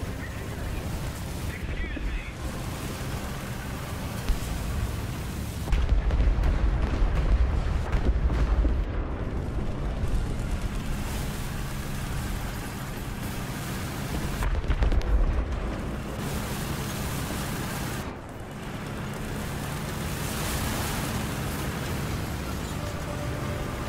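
Tank tracks grind over snow.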